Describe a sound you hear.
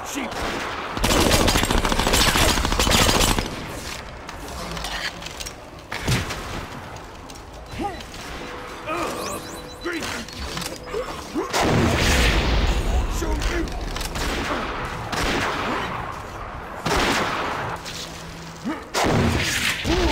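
Gunfire rattles in quick bursts.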